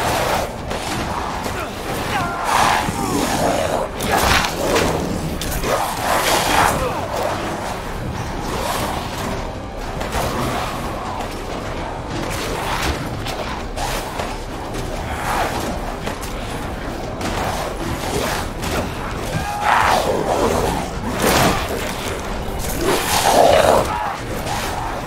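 A monster snarls and growls close by.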